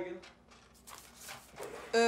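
Papers rustle in a drawer.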